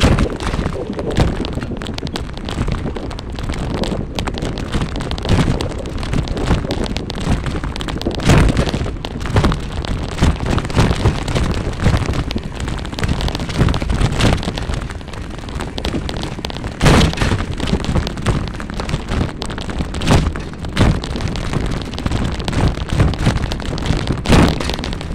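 Wind gusts loudly outdoors, rumbling and buffeting.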